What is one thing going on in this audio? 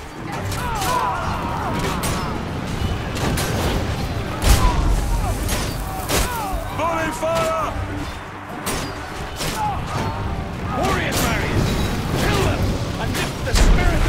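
A large crossbow fires bolts with sharp thuds.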